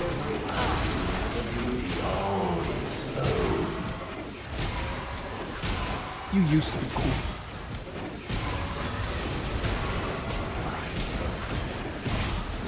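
Game spell effects whoosh and clash in a fight.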